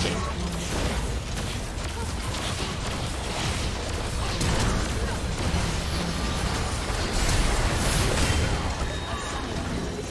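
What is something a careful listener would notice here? Magic spells whoosh and crackle in a busy video game battle.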